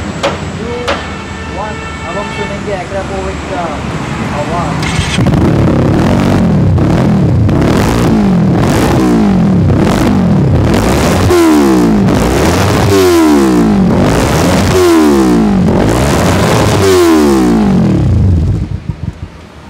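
A motorcycle engine idles and revs up and down repeatedly.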